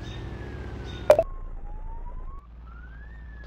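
A car engine rumbles.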